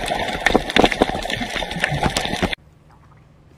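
Water swirls and bubbles underwater.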